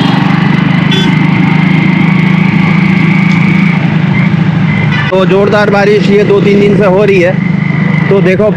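A motorbike engine hums steadily up close.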